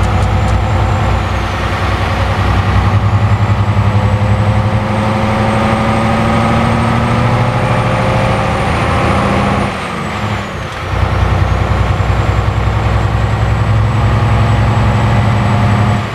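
A truck engine drones steadily, briefly dropping away as the gears change.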